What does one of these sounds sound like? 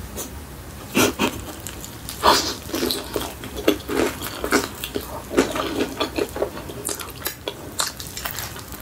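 A young woman bites into crispy fried chicken with loud crunches.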